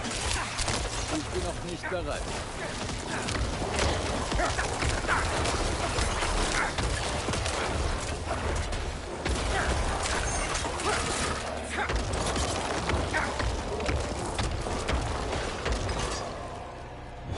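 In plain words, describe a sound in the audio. Weapons strike monsters with quick, repeated hits.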